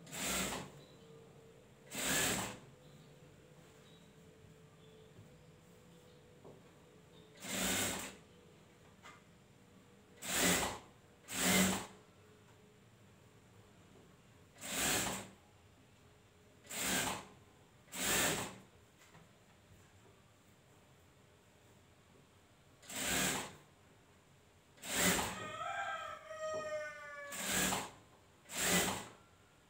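A sewing machine runs in short, loud bursts.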